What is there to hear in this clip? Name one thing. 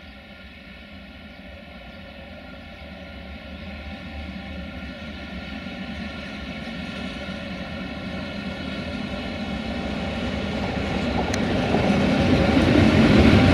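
An electric locomotive hums steadily as it approaches, growing louder.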